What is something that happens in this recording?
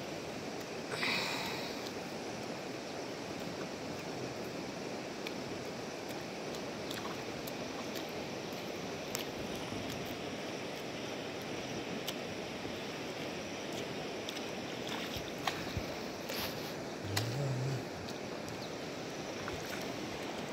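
Bare feet splash through shallow water.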